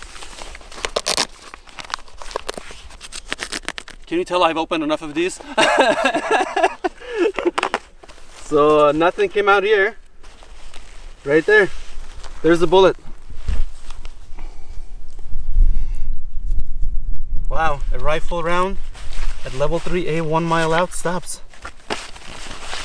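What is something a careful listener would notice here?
Fabric and plastic sheets rustle and crinkle as they are handled.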